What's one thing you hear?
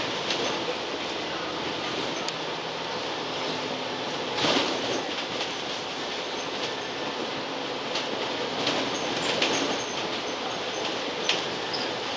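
Tyres roll on asphalt with a steady rushing noise.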